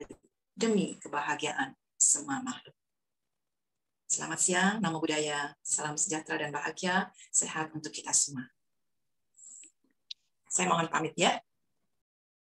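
An elderly woman speaks calmly through a microphone on an online call.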